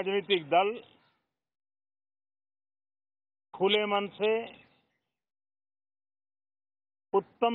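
An elderly man speaks calmly into microphones, in short phrases with pauses.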